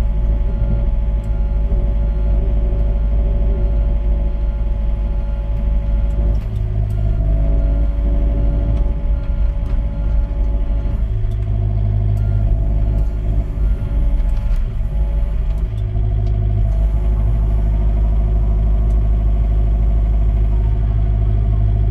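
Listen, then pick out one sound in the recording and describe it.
A mini excavator's diesel engine runs, heard from inside the cab.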